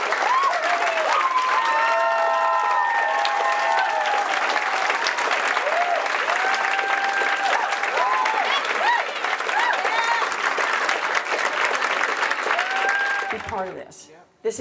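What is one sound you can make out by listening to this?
A crowd claps and applauds.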